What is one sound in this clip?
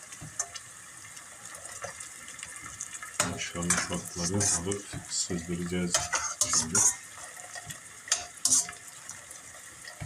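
A ladle scrapes and clinks against a metal pot.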